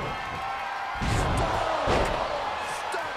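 A heavy body slams hard onto a wrestling mat.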